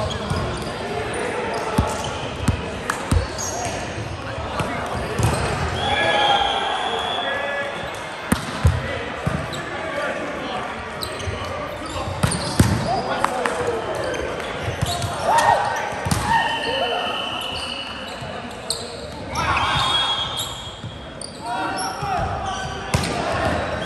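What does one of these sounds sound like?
Young men shout calls to each other across a large echoing hall.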